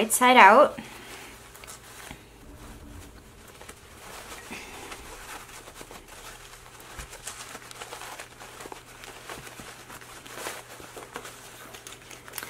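Fabric rustles and crinkles as it is handled.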